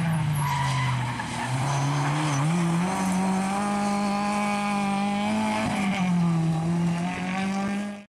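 Tyres skid and crunch on gravel.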